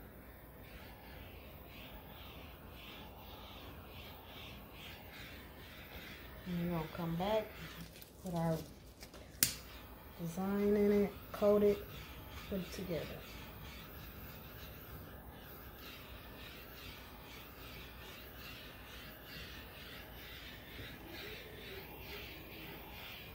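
A gloved hand rubs softly over a smooth, wet surface.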